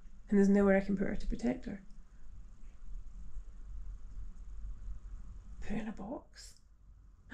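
A woman speaks briefly and calmly close by.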